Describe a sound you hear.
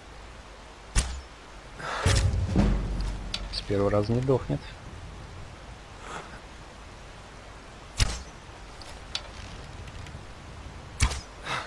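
A bowstring twangs sharply as an arrow is loosed.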